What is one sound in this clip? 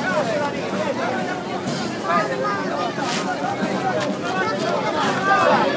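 A crowd of people chatters and calls out all around, outdoors.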